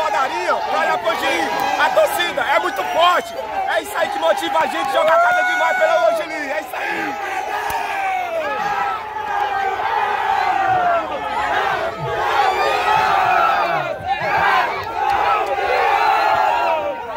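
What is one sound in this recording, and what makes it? A crowd of men and women shouts and cheers loudly outdoors, close by.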